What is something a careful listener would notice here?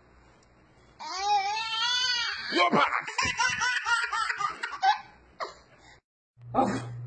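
A baby shrieks with laughter close by.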